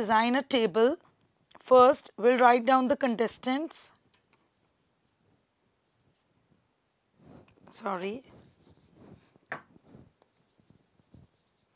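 A woman speaks calmly through a microphone, explaining.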